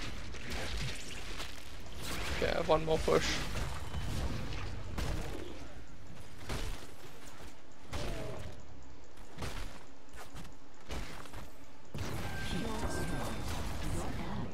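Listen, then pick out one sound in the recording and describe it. Magic blasts and weapon strikes crackle and thud in a busy fight.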